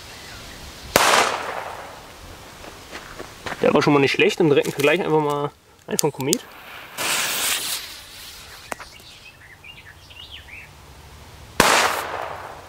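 A firecracker bangs loudly outdoors, with the blast echoing away.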